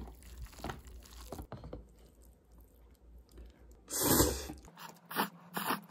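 Chopsticks stir and lift noodles in a cup.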